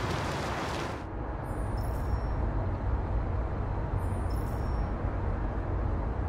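An engine rumbles low and steady inside a moving vehicle.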